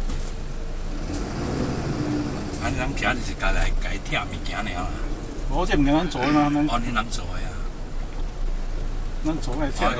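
A middle-aged man speaks casually nearby.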